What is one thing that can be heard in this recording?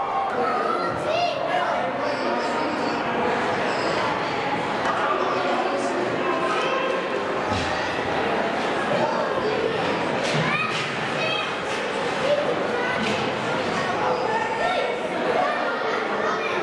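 Spectators chatter and call out in a large echoing rink.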